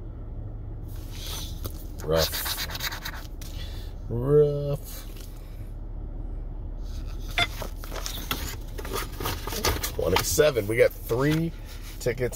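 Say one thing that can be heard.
Stiff paper rustles and crinkles as it is handled.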